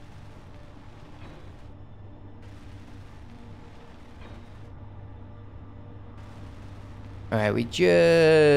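A welding torch crackles and hisses in short bursts.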